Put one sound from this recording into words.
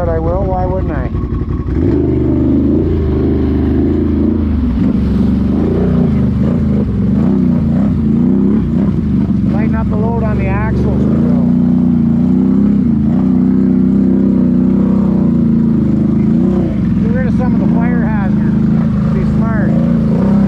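Another quad bike engine whines ahead.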